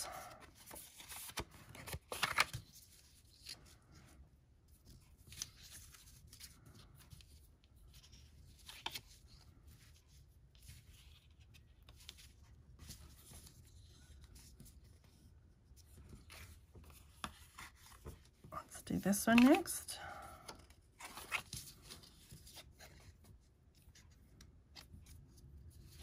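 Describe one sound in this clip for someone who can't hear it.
Paper cards rustle and slide against each other under hands.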